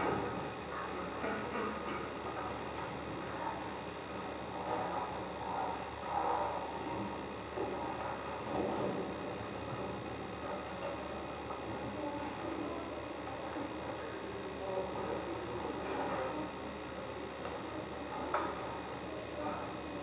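An orchestra plays music in a large hall.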